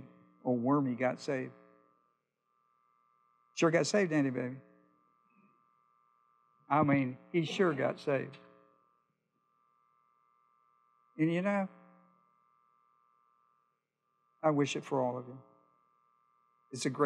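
An older man speaks calmly through a microphone in short bursts with pauses.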